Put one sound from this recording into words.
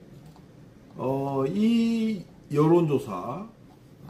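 A middle-aged man speaks close to a microphone, calmly and then with emphasis.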